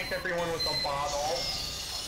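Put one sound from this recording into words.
A wrench clangs against a metal machine.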